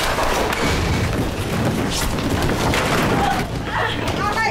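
Bodies scuffle and thud in a rough struggle.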